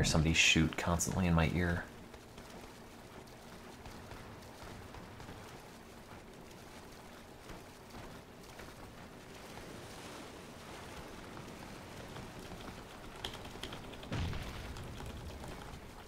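Water splashes softly as a swimmer strokes through it.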